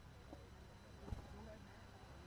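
A cricket bat strikes a ball with a sharp knock.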